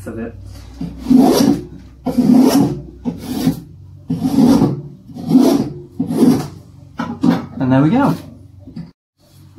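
A spokeshave shaves wood in steady, rhythmic strokes.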